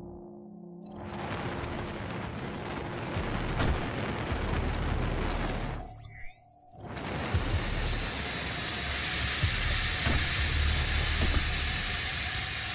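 A loud mechanical roar and hiss fills a large metal space.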